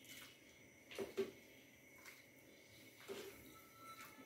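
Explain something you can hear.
A metal ladle clinks against a steel pot.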